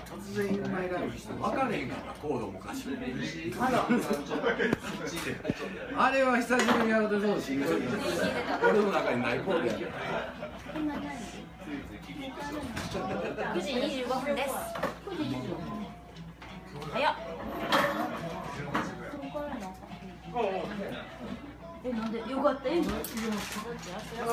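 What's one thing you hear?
Several men talk and laugh loudly nearby in a busy, crowded room.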